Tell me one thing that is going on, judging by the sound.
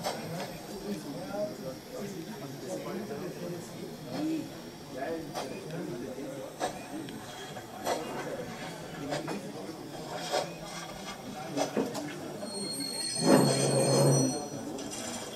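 A small model steam engine chuffs and clicks softly as it rolls slowly along the track.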